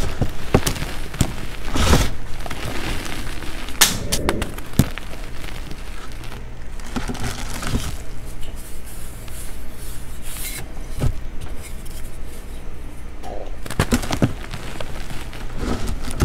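Powder crumbles and pours down, hissing softly.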